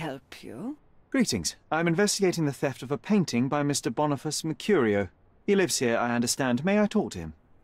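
A young man speaks calmly and asks questions.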